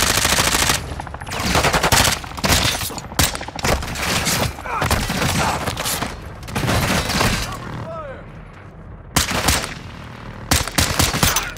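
Gunshots ring out in rapid bursts with sharp echoes.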